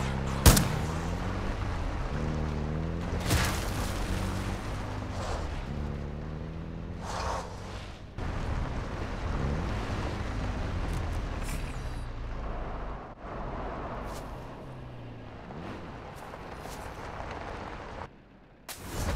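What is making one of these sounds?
A vehicle engine roars and revs.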